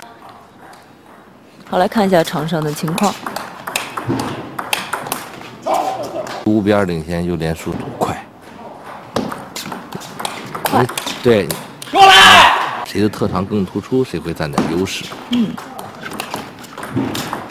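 A table tennis ball clicks back and forth on paddles and the table.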